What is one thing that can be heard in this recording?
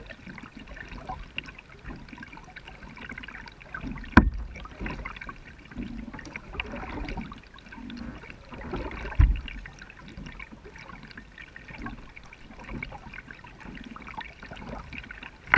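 Water laps and trickles against a kayak hull.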